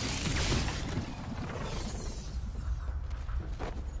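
Footsteps clatter quickly across a metal grating.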